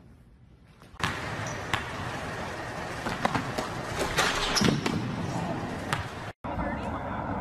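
A basketball bounces on a gym floor.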